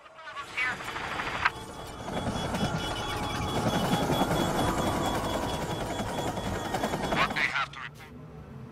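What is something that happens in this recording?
A helicopter's rotor whirs steadily close by.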